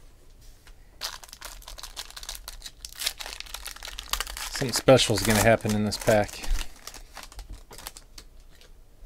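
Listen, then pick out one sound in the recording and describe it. Plastic wrapping crinkles and tears as a pack is opened.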